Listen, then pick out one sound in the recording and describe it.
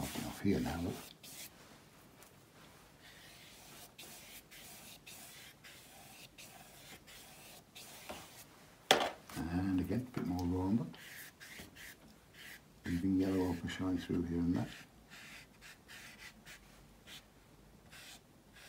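A paintbrush swishes softly across paper.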